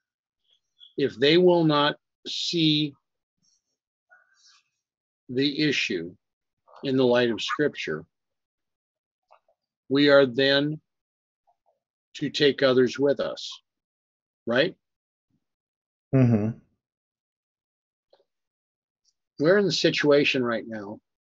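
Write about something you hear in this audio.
An older man speaks calmly and slowly into a microphone, with pauses.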